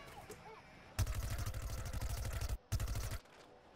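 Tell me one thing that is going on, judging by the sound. A rapid-fire video game weapon rattles in bursts.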